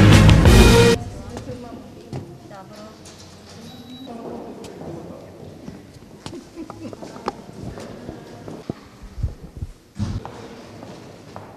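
Men and women talk quietly in a large echoing hall.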